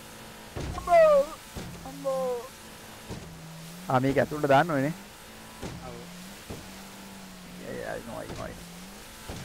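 Water splashes and sprays against a speeding boat's hull.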